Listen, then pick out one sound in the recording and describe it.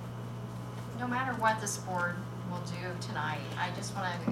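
A woman speaks calmly into a microphone in a room with a slight echo.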